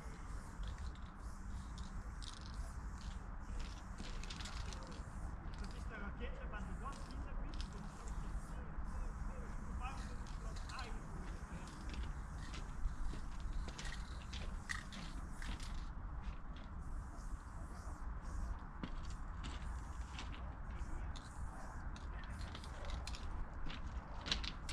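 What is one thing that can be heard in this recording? Spray paint hisses from a can in short bursts.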